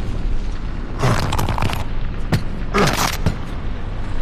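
A beast growls and snarls close by.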